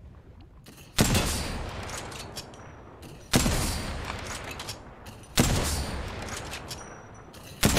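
Gunfire from a game bursts loudly in short volleys.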